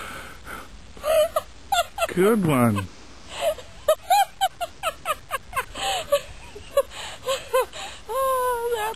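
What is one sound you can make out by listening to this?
A young child laughs and squeals up close in bursts.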